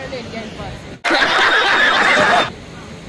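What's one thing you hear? An audience roars with laughter.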